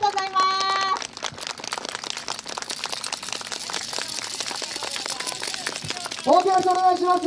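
Wooden clappers clack rapidly.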